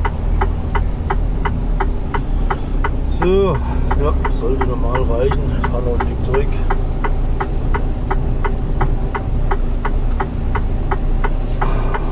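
A turn signal ticks rapidly and evenly.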